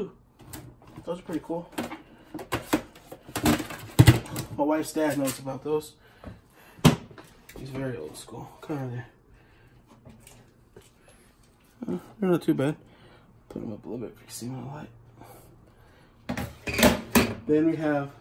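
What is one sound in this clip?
Equipment knocks and clatters as it is handled.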